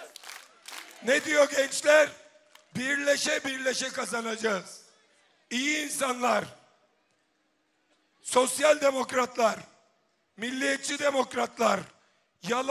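A man speaks forcefully into a microphone, amplified over loudspeakers.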